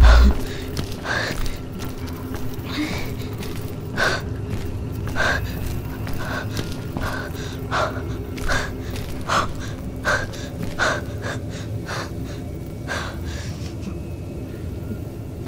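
Footsteps tap slowly on a hard floor.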